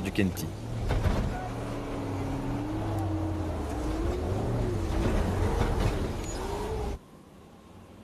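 Dense brush scrapes and swishes against a vehicle's body.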